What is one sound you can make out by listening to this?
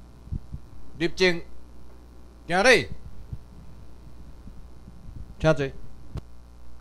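A man calls out short loud commands in an echoing hall.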